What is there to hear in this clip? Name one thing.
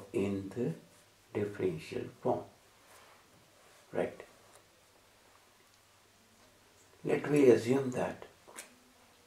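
A man speaks calmly into a close microphone, in short phrases with pauses.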